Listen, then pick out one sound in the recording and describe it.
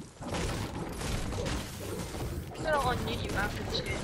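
A video game pickaxe strikes wood.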